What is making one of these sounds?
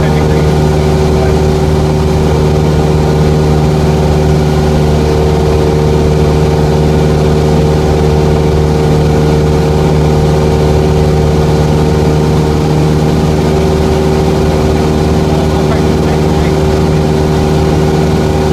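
A single-engine propeller plane drones steadily in cruise flight, heard from inside the cabin.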